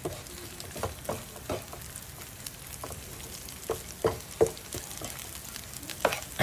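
Meat sizzles softly in a pan.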